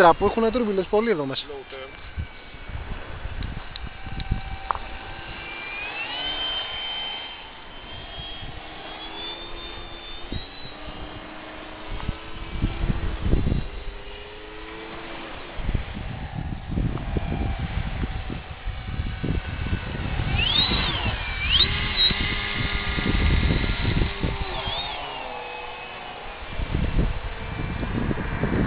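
A model plane's engine whines overhead, rising and falling in pitch as it passes.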